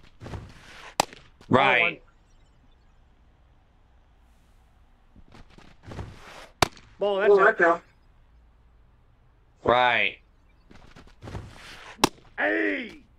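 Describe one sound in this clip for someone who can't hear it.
A ball smacks sharply into a catcher's mitt.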